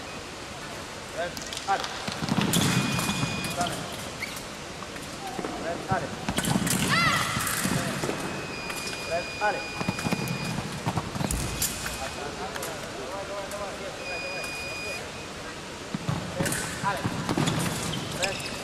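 Fencing blades clash and scrape in quick bursts.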